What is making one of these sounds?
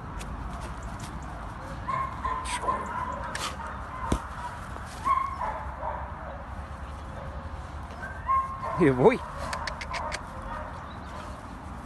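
A dog scampers through grass.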